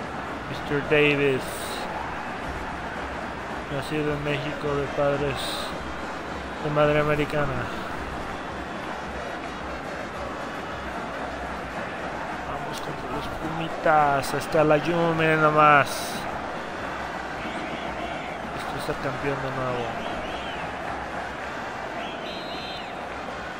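A large stadium crowd murmurs and cheers steadily.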